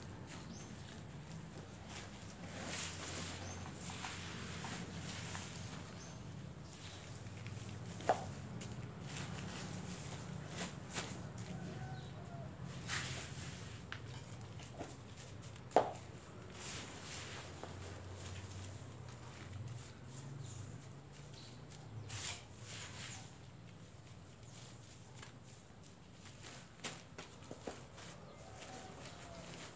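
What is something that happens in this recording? Hands press and pat loose potting soil around a cutting.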